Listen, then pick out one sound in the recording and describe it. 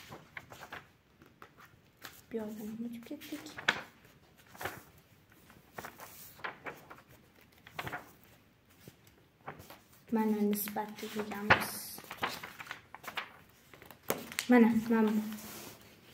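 Paper pages rustle and flip as a book's pages are turned.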